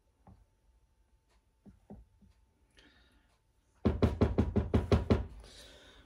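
A spatula scrapes against a glass baking dish.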